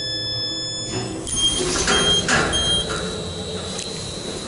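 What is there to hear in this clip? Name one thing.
Elevator doors slide open with a low rumble.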